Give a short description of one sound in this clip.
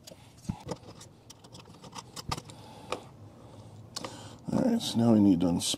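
Small metal parts click and rattle as a wall socket is pulled out.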